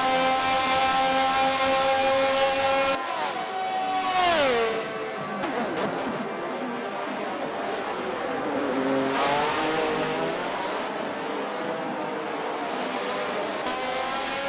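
A racing car engine screams at high revs, then drops in pitch as the car passes and rises again.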